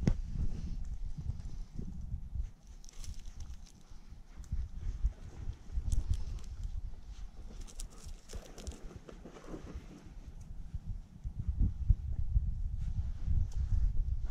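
Puppies dig and scratch in sand.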